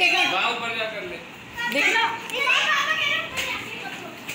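Young children talk and squeal excitedly nearby.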